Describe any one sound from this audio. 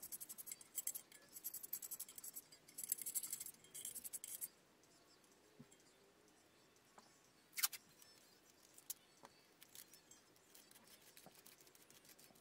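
A blade scrapes and cuts at a speaker cone.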